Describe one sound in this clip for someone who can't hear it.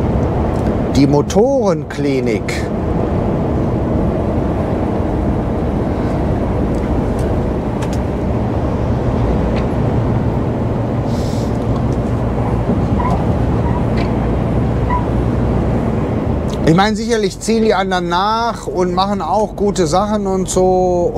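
A man speaks calmly from close by.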